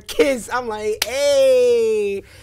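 A young man laughs loudly into a close microphone.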